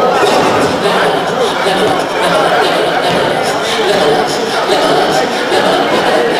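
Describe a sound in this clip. Young men's voices call out across a large echoing gym.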